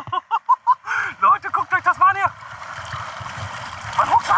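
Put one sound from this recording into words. Small waves lap against rocks close by.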